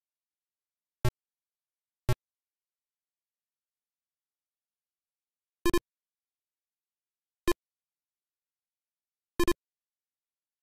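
Short electronic beeps from a retro video game sound now and then.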